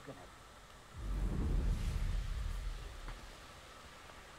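A broom rushes through the air with a loud whoosh.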